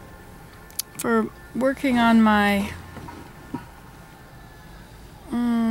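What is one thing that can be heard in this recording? An elderly woman speaks close up in short, drawn-out phrases.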